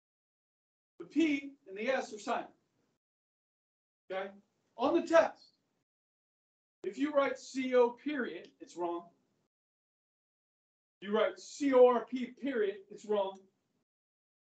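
A middle-aged man speaks with animation, pausing between phrases.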